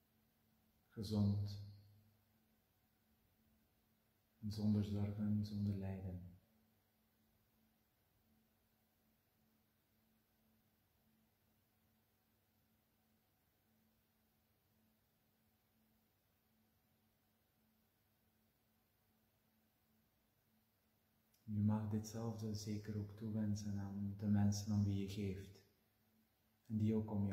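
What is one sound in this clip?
A man speaks slowly and calmly, close by, with long pauses.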